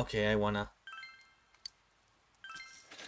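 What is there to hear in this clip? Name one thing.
Short electronic chimes blip quickly.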